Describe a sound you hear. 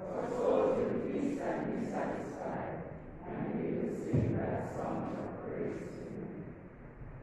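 A man speaks slowly through a microphone in a large echoing hall.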